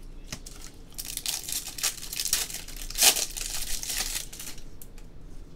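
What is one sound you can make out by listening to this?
A foil wrapper crinkles and rustles close by.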